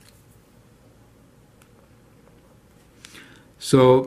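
A marker squeaks briefly on paper.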